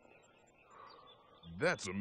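A man exclaims in amazement.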